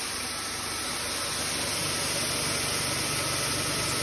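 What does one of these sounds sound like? Grain trickles from a metal chute into a bin.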